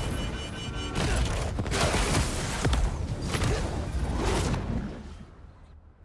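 Wind rushes loudly past as a figure swings fast through the air.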